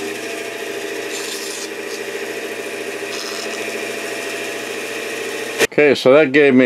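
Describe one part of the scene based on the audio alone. A band saw runs with a steady whine.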